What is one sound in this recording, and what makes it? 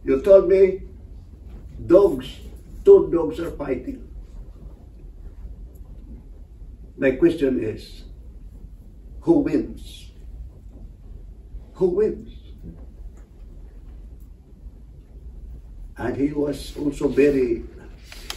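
A man speaks to a group in short phrases with long pauses.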